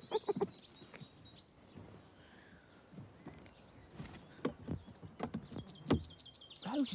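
A canopy clunks and knocks as it is pulled shut.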